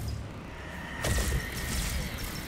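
A blast of energy explodes with a bang.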